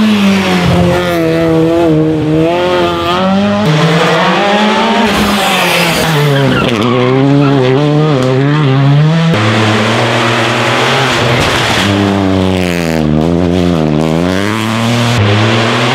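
A rally car engine roars loudly at high revs, rising and falling with gear changes.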